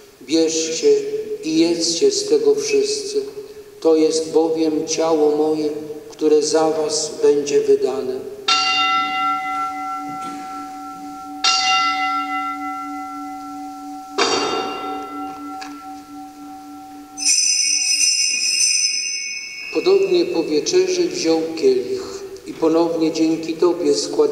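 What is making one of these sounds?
An elderly man chants in a sung voice through a microphone, echoing in a large hall.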